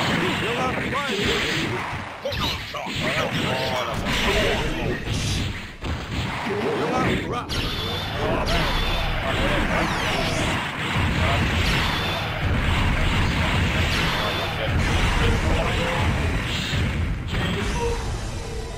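Punches, blasts and explosions crash rapidly in a fighting game.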